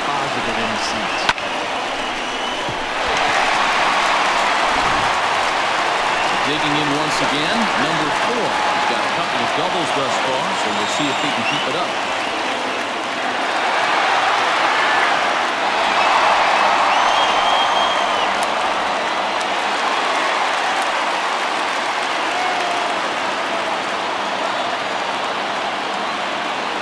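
A large crowd cheers and roars in a big open stadium.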